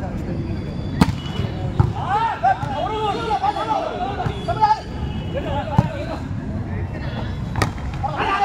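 Hands strike a volleyball with sharp slaps.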